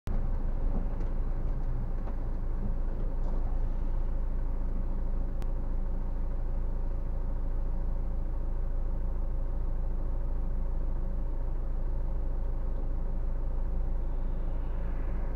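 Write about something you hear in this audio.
A car engine hums low, heard from inside the cabin while creeping in slow traffic.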